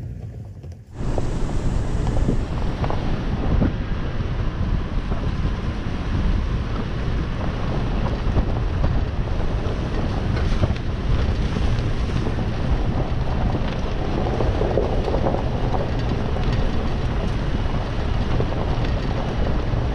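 An engine rumbles steadily from close by as a vehicle drives along a bumpy dirt track.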